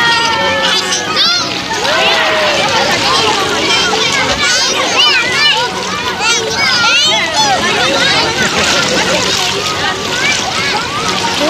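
Children chatter and squeal playfully in the water nearby.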